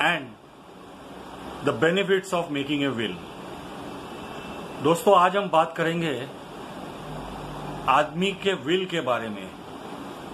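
An elderly man speaks calmly and close to a microphone, in short bursts with pauses.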